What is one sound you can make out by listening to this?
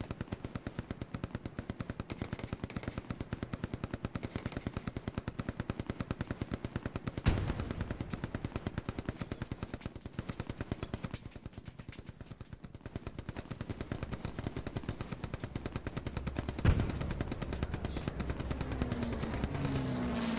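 Quick footsteps crunch through grass and brush.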